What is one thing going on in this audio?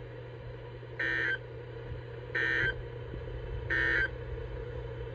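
A radio gives short, high electronic beeps at a steady pace.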